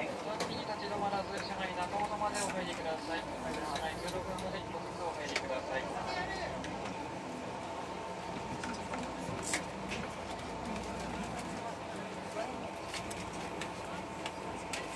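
A train rumbles slowly along the track with a steady hum.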